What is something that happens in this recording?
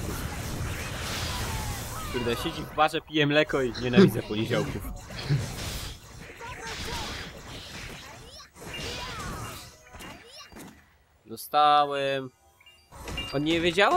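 Fighting sound effects of blows and blasts clash and crackle.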